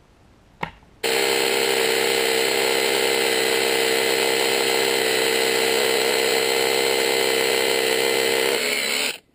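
A cordless rotary hammer drills into concrete.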